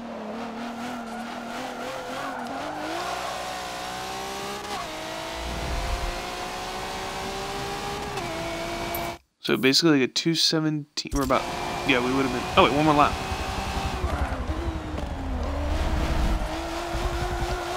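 Tyres squeal as a car slides through corners.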